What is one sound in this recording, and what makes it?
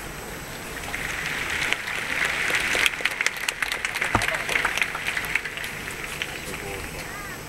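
A large crowd claps and cheers.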